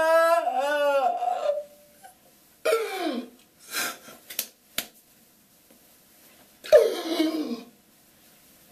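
A man sings in a high, strained voice, breaking into screams.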